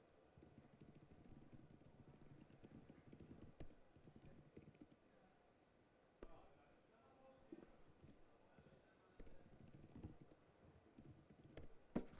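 Keys on a laptop keyboard tap faintly.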